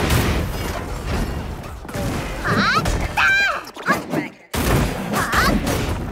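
Blows thud and crack in a video game fight.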